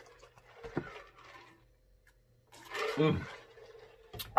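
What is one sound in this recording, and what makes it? A man slurps a drink.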